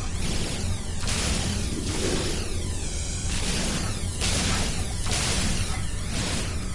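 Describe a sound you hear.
A mining laser hisses and crackles steadily in short repeated surges.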